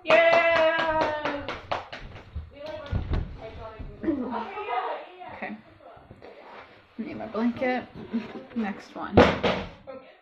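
A young woman laughs and talks with animation close by.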